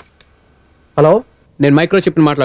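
A man speaks calmly into a phone.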